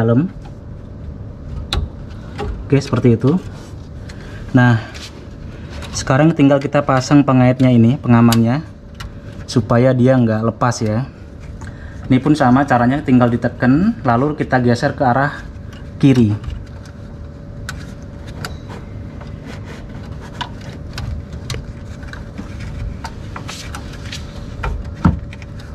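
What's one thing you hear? A plastic headlight cover rattles and clicks as it is twisted into place.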